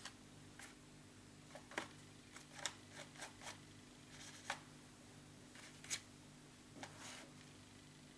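A paintbrush dabs and scrapes on paper.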